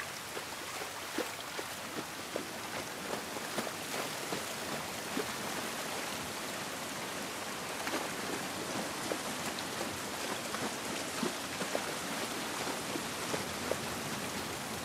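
Footsteps splash and crunch on wet, rocky ground.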